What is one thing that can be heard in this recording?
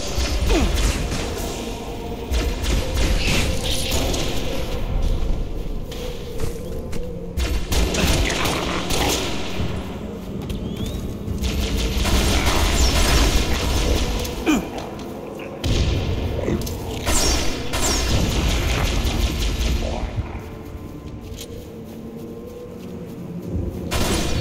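Gunfire crackles in a game.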